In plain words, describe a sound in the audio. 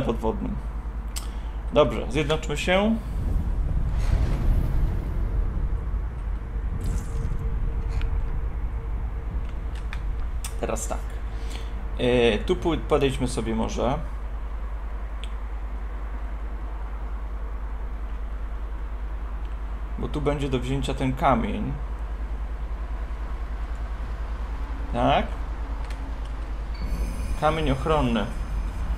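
A young man talks casually into a close microphone.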